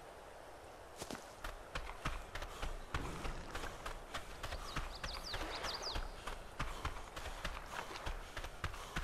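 Quick footsteps run over ground and through rustling plants.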